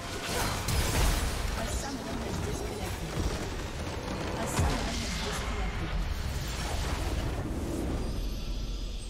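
Loud game battle sounds of spells and impacts crash and boom.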